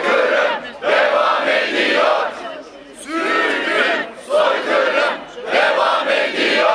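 A crowd of men and women chants loudly in unison outdoors, in repeated bursts.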